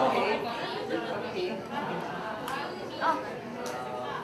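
Women laugh nearby.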